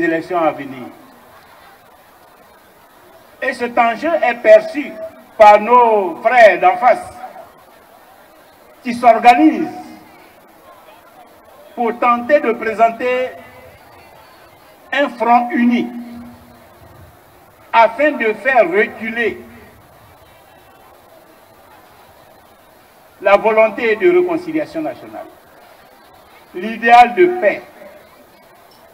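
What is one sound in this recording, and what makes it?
A man speaks forcefully in short bursts with long pauses, through a microphone and loudspeakers outdoors.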